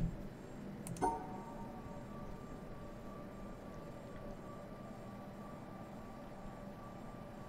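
A soft electronic tone starts and hums steadily.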